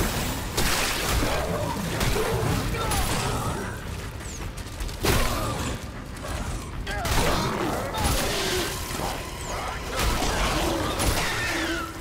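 A heavy weapon fires in loud blasts.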